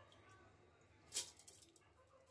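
Wet rice drops with a soft thud into a metal container.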